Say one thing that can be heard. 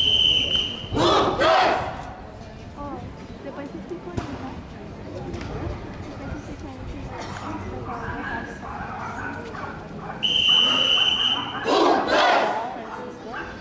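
A group of children shouts out together loudly.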